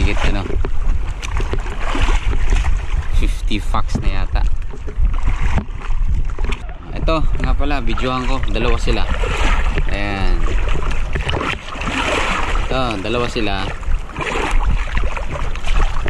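Wind rumbles across open water.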